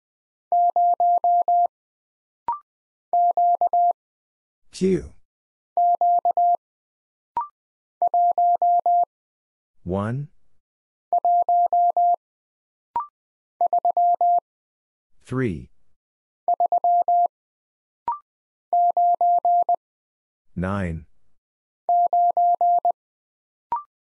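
A telegraph key taps out quick, steady bursts of high Morse code beeps.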